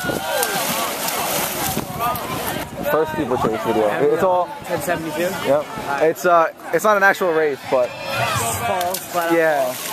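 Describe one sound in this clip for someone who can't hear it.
A runner splashes through water.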